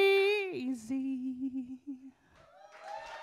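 A young woman sings a long held note into a microphone.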